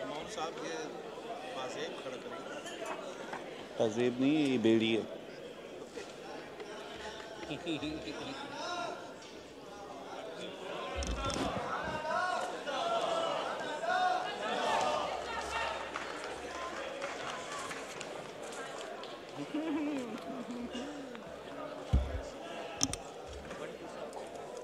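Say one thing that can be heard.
Men and women talk in low voices.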